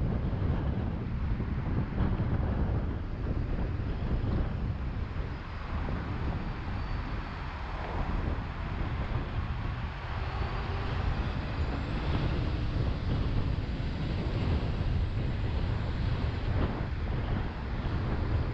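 Wind rumbles against the car as it drives along a road.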